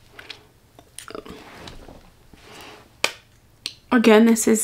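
A lipstick glides over lips with a soft sticky sound.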